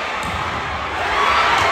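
A crowd roars loudly as a rally ends.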